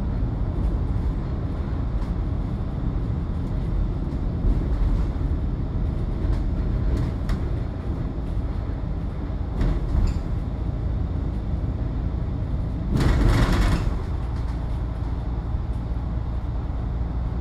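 A vehicle's engine rumbles steadily while driving along a road.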